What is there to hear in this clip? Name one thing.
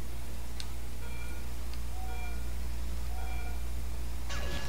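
Three electronic countdown beeps sound at a steady pace.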